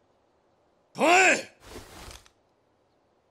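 A man shouts a sharp command.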